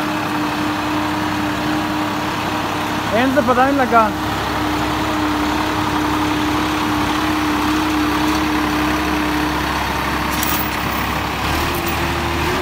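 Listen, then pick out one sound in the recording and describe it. A tractor engine runs with a steady diesel rumble.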